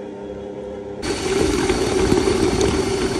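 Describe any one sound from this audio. Thick dough thumps and churns in a mixing bowl.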